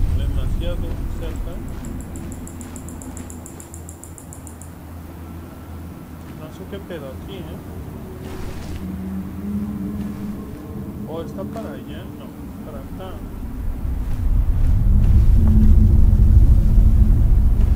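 Wind blows outdoors, growing louder toward the end.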